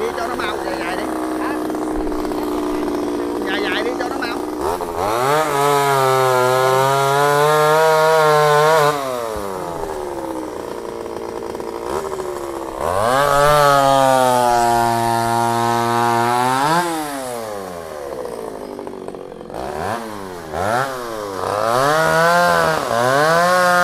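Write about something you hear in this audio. A chainsaw engine idles, then revs up loudly and falls back again and again.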